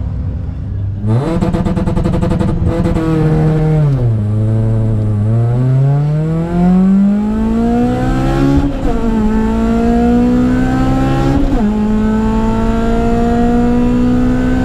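A car engine roars loudly from inside the car, climbing in pitch and dropping back with each gear change.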